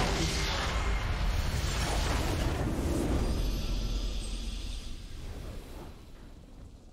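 A game structure explodes with a deep rumbling boom.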